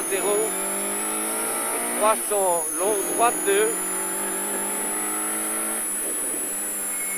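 A car engine drones steadily from inside the cabin.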